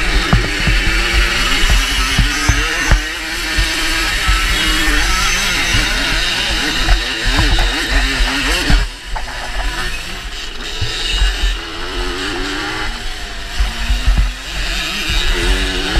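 Wind buffets loudly.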